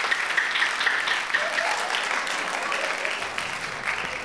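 Two men clap their hands rapidly.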